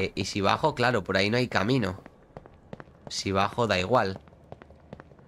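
A young man talks loudly and with animation, close to a microphone.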